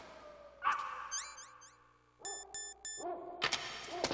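Short electronic beeps chirp in a rapid run.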